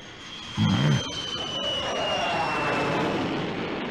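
A falling object whistles through the air with a high, slowly dropping tone.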